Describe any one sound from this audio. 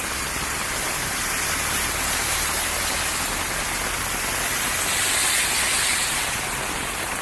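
A car drives through deep water, splashing loudly.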